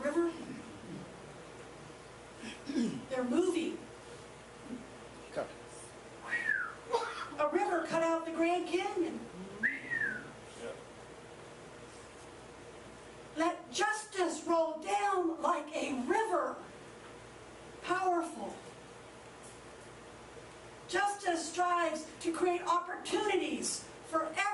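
An elderly woman speaks slowly and expressively into a microphone, with long pauses.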